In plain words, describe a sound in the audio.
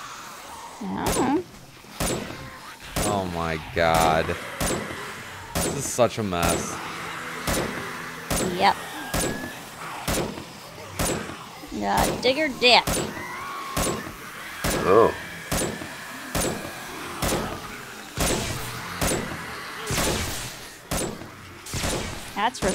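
Melee blows land with dull thuds.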